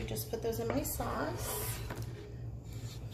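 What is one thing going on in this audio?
A knife scrapes food off a wooden board into a bowl.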